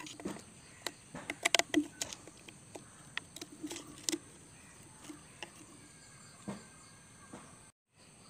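Scissors snip through thin plastic.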